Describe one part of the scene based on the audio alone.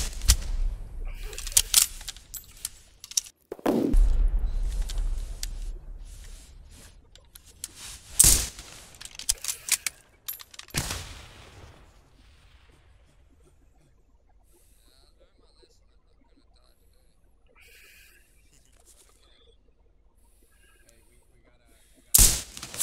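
Rifle shots crack loudly, some echoing off into the distance.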